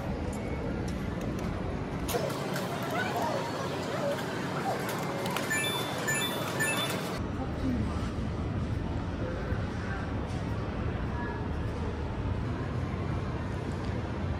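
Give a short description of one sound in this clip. Arcade machines hum and chatter with a steady electronic din.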